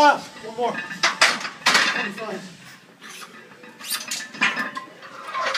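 Metal weight plates clank on a rack.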